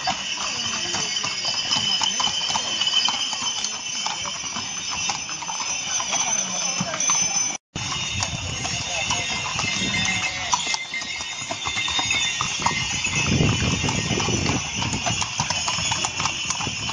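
Horses' hooves clop as the horses walk on a paved stone street.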